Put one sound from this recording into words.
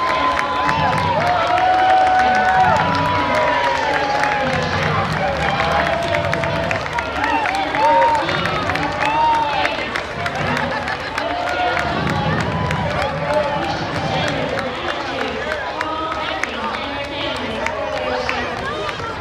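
A crowd of spectators claps.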